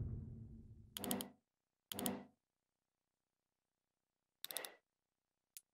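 Short menu blips sound a few times.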